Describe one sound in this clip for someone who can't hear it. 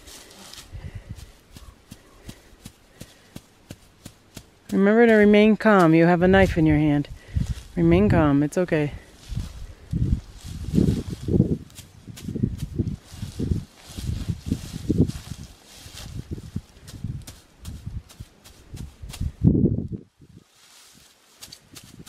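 Dry grass rustles and crackles.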